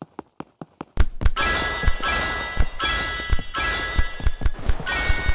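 Bright game chimes ring out in a quick jingle.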